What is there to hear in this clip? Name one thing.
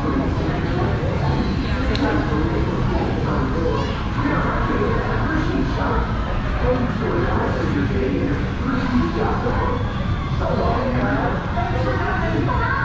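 A crowd of adults chatters nearby.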